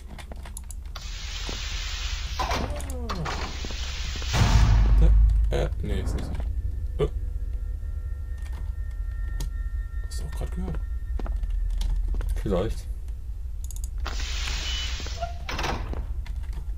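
A heavy metal door slides open with a loud hiss.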